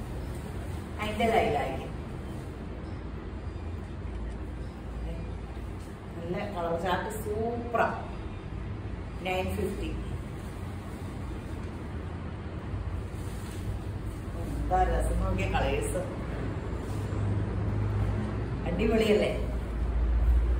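A woman speaks briefly and calmly, close by, in short bursts.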